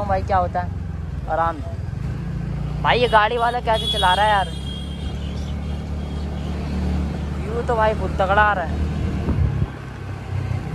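A scooter engine hums steadily.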